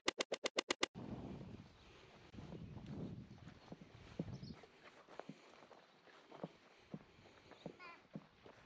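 Children's footsteps patter on grass as they run.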